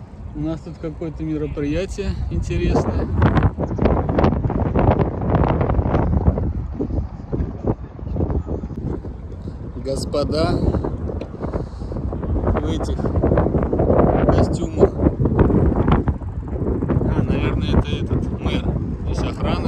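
A man talks with animation close to a microphone, outdoors.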